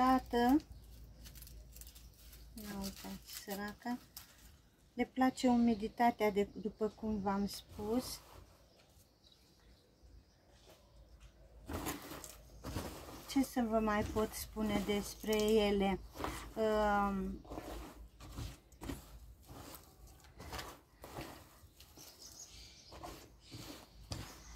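Potting soil rustles and crumbles under gloved hands.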